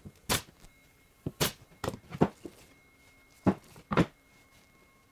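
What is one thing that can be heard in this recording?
A nail gun fires with sharp snaps.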